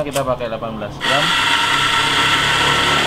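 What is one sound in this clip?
A coffee grinder whirs loudly.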